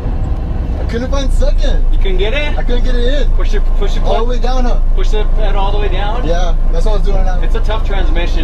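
A man talks loudly from a nearby car.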